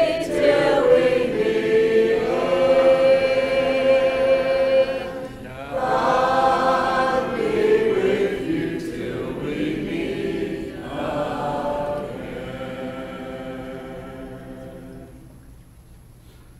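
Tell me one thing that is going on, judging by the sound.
A middle-aged man sings a slow hymn through a microphone.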